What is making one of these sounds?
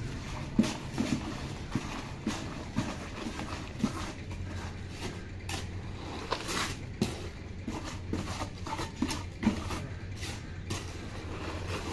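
Wet cement slops out of a plastic bucket.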